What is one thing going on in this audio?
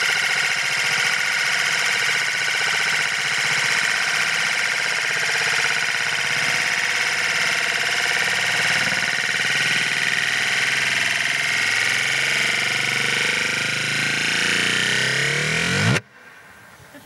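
A metal disc spins and rattles on a mirror, its whirring rising faster and faster until it stops abruptly.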